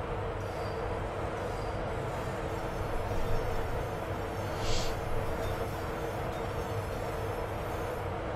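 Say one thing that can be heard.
Another train rushes past close by.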